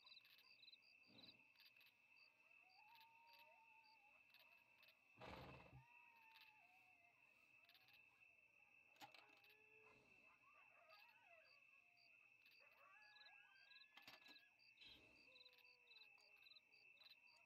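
Wooden wagon wheels creak and rattle over the ground.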